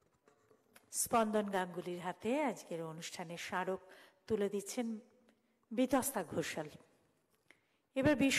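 A woman speaks expressively into a microphone in a large hall.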